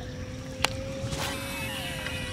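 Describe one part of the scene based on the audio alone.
A fishing line whizzes out as a rod is cast.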